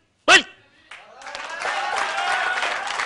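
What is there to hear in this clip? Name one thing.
A crowd of men chants together loudly.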